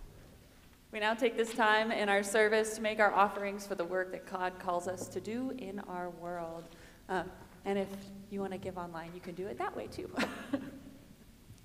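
A young woman speaks clearly into a microphone in an echoing hall.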